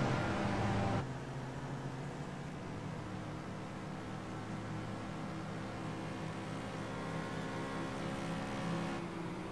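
Several racing car engines drone together as a pack of cars drives close behind.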